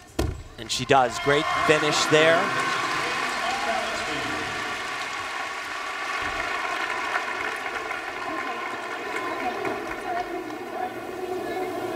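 A large crowd cheers and applauds in an echoing arena.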